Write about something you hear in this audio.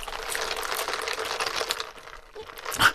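A man slurps a drink through a straw.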